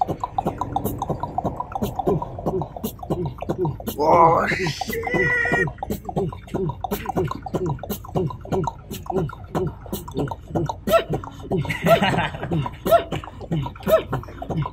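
A young man raps rhythmically and quickly, close by.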